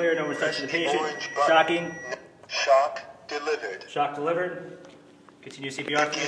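An automated device voice gives spoken instructions.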